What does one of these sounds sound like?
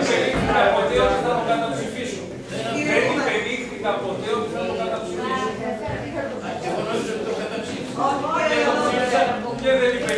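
An adult man speaks loudly and with animation, close by.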